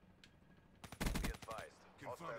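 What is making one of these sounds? Rapid gunfire bursts from a rifle.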